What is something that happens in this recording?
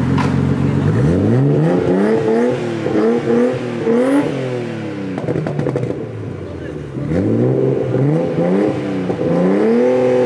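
A car engine revs loudly, rising and falling several times.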